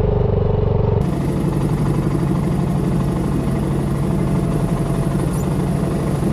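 A scooter engine idles close by.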